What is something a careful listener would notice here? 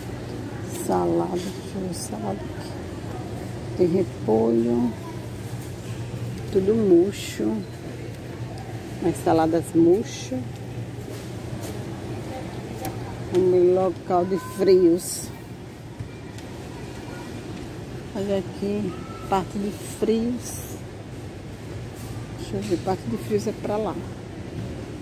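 A woman talks nearby in short bursts.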